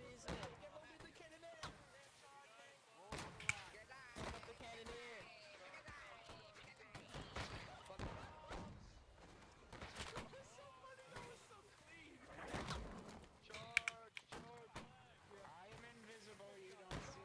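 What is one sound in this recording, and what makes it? Musket shots crack in bursts.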